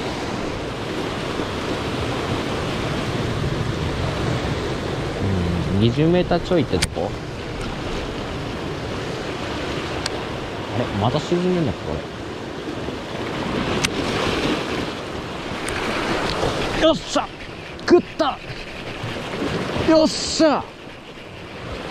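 Waves wash and splash against rocks nearby.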